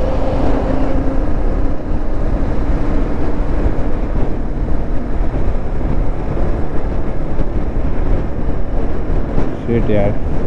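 A sport motorcycle engine hums while cruising on a highway.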